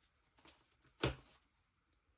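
A small strip taps down onto paper.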